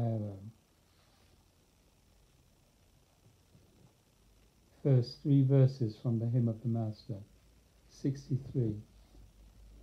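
A middle-aged man reads aloud calmly, close by.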